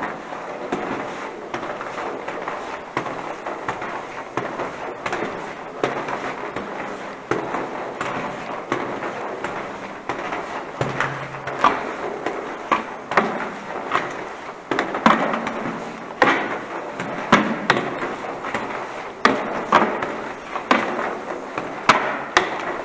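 Footsteps echo on a hard floor in an echoing tunnel.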